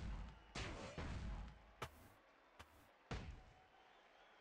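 Heavy blows land with thuds.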